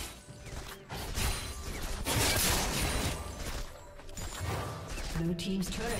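Spell blasts and magic effects whoosh and crackle in a fight.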